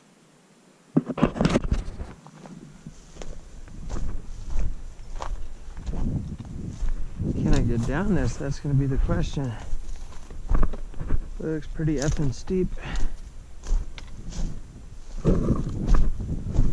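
Dry branches scrape and rustle against clothing.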